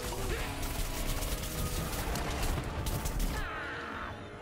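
Rapid cartoonish gunfire and blasts crackle loudly.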